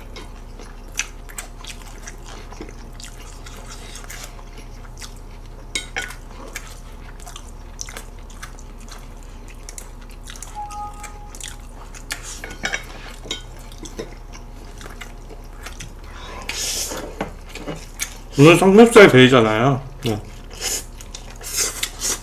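Chopsticks click against a dish.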